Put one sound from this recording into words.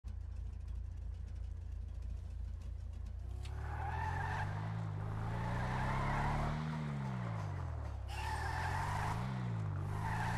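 Tyres skid and scrape on pavement.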